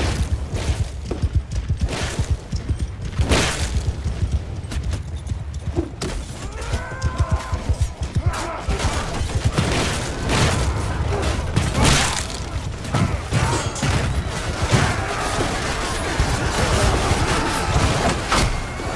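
Weapons clash in a large battle.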